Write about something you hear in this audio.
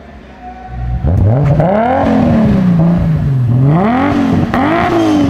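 A second car engine revs hard several times, rising and falling.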